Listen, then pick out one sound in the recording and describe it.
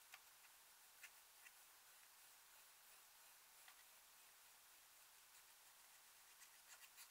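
A metal spatula scrapes and crumbles pressed powder.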